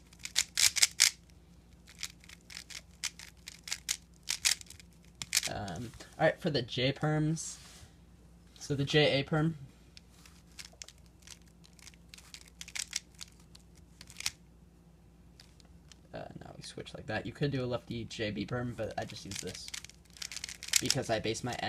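The layers of a plastic puzzle cube click and clatter as they are turned rapidly.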